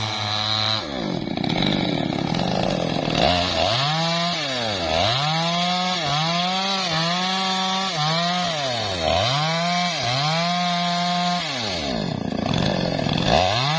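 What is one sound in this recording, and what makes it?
A chainsaw engine roars close by, revving up and down again and again.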